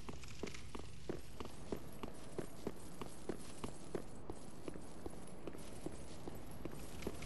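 Armoured footsteps run on stone paving.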